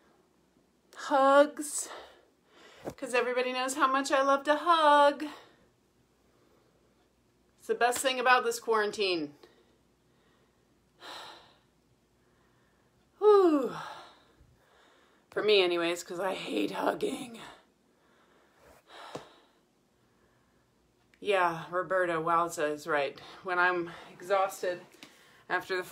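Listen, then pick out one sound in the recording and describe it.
A middle-aged woman talks with animation close to the microphone, pausing now and then.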